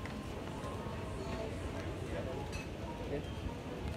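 Luggage trolley wheels roll across the floor.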